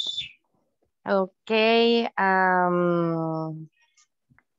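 A woman speaks slowly and clearly over an online call, drawing out her words.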